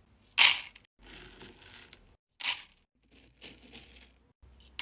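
A metal scoop digs and rustles through a heap of wax beads.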